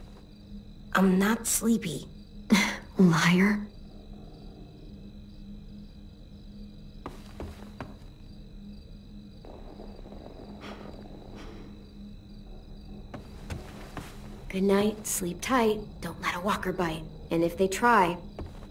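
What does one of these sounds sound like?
A young girl speaks softly and calmly.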